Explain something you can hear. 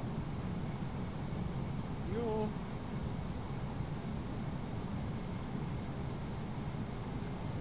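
An aircraft engine hums low and steady.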